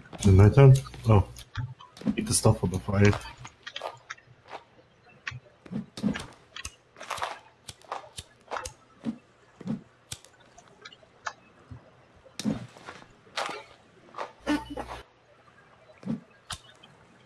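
Footsteps crunch over dry leaves and forest ground.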